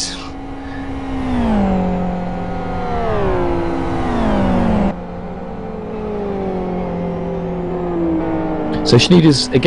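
A racing car engine roars loudly, its pitch climbing and dropping with gear changes.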